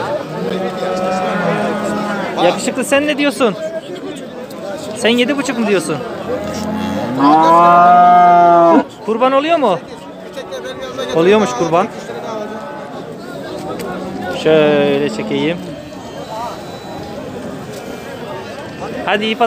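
Calves moo loudly nearby.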